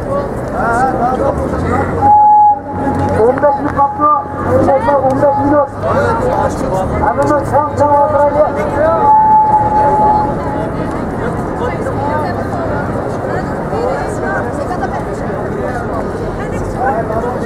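A crowd of men and women talk and call out outdoors.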